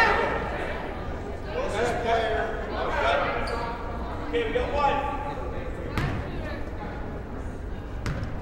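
A crowd in a gym cheers and shouts, echoing through a large hall.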